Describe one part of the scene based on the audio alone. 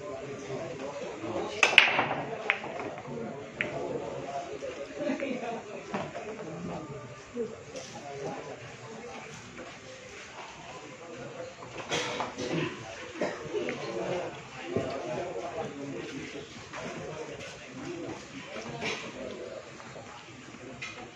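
A crowd of men murmurs and chats nearby.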